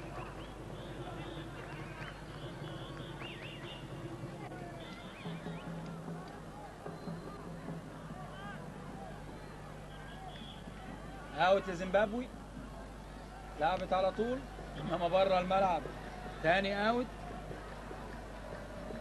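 A large stadium crowd murmurs and chatters in the distance.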